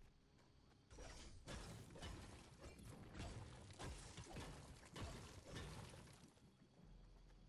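A pickaxe strikes rock repeatedly with sharp, crunching hits.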